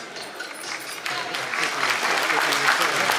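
Hands clap in applause.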